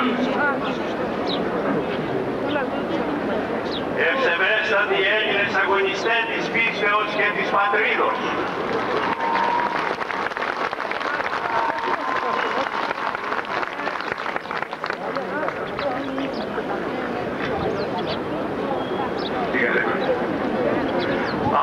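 An elderly man speaks through loudspeakers, echoing outdoors.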